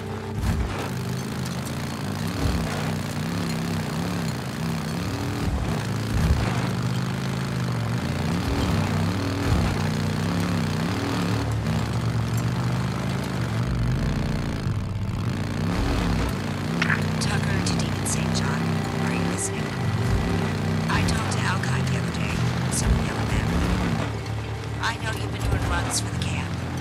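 A motorcycle engine roars and revs up and down.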